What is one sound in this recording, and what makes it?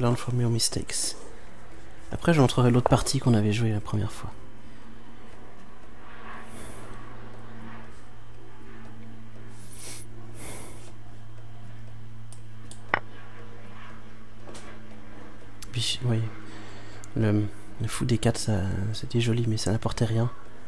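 A young man talks calmly and close into a microphone, with pauses.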